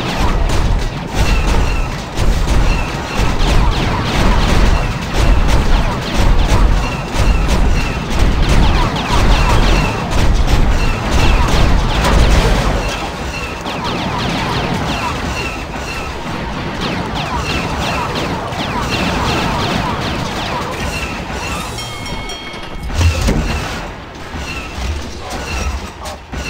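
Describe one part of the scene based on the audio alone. Laser blasters fire in rapid bursts.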